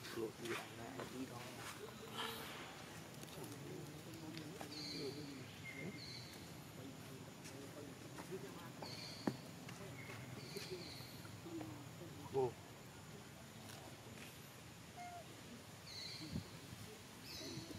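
A baby monkey squeaks softly close by.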